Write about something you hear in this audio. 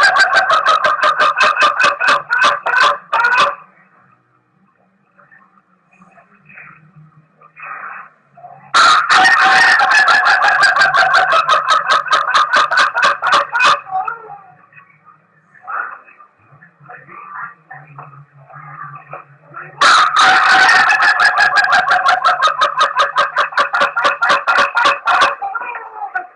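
A rooster crows loudly in long, rapidly pulsing calls, again and again.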